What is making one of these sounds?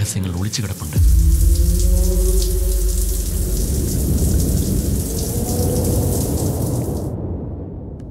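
Water sprays steadily from a shower.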